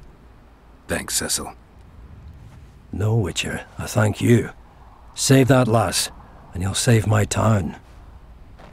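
A man answers warmly in a deep voice.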